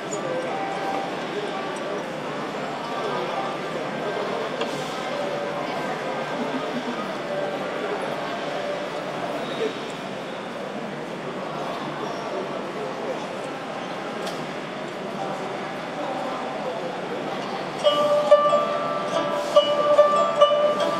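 A plucked zither plays a gentle melody, with notes ringing out clearly near the end.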